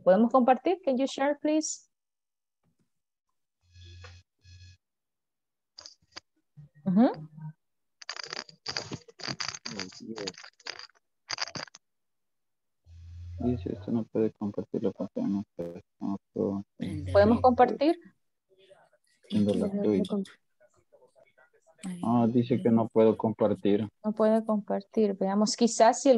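A woman speaks calmly over an online call, in bursts with pauses.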